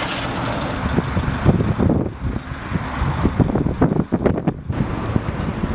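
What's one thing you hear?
A wooden board scrapes across sand.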